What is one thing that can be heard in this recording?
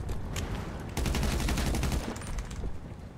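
Gunfire rattles in a quick burst.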